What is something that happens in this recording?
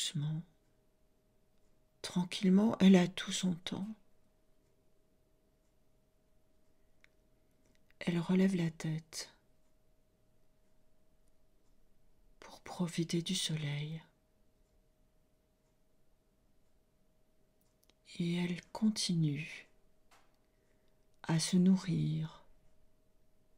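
A middle-aged woman speaks slowly and calmly into a close microphone, with long pauses.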